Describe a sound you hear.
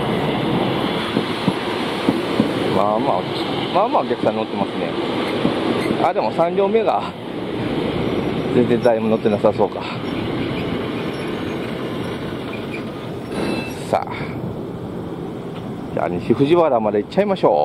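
An electric train idles with a steady hum close by.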